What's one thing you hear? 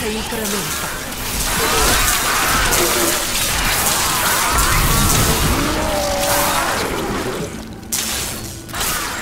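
Magic spells crackle and burst in a fast fantasy battle.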